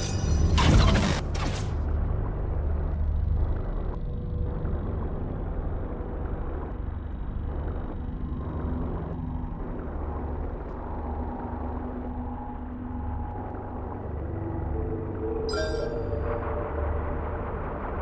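Low, steady game music plays throughout.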